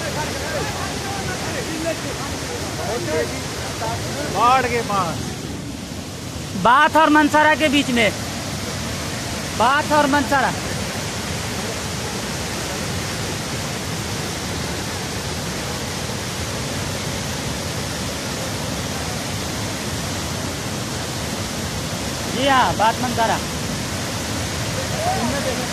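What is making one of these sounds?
Floodwater roars and churns loudly and steadily.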